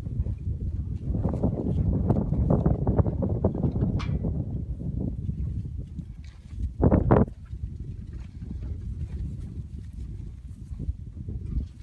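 Wind blows across open grassland and buffets the microphone.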